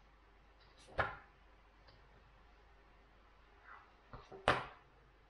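Light thumps and taps sound as a book is handled.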